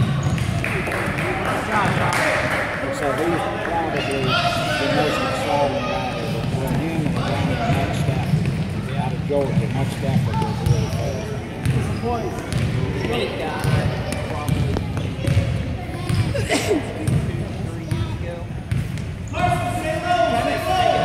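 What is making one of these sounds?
Children's voices chatter and call out across an echoing gym.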